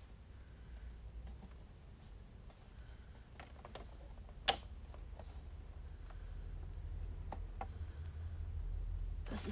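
Fingers tap and press on paper.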